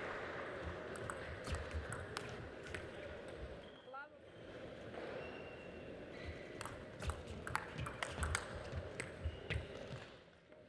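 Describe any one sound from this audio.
A table tennis ball clicks quickly back and forth off paddles and the table.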